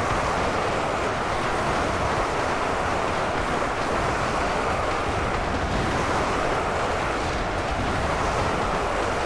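A huge crowd of fighters clashes in a steady, dense roar of battle.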